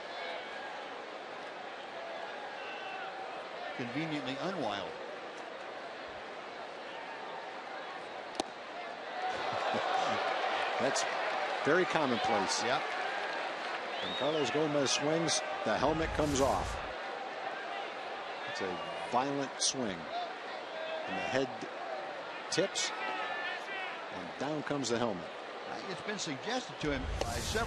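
A large crowd murmurs in an open stadium.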